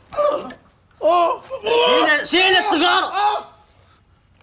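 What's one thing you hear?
A man coughs and splutters loudly.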